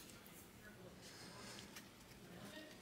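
Trading cards rustle and slide in a person's hands.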